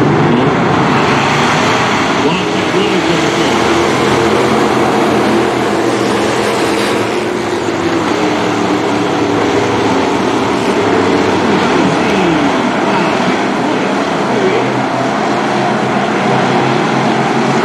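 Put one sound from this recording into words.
Race car engines roar loudly, revving up and down.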